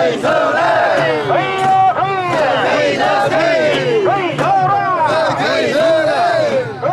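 A crowd of men chant loudly in rhythm close by.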